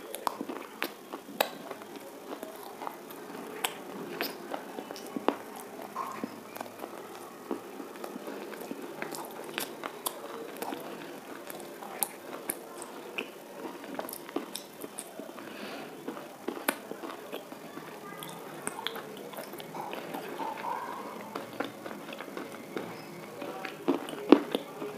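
A woman chews food noisily close to a microphone, with wet smacking sounds.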